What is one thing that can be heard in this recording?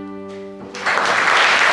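A fiddle plays a tune.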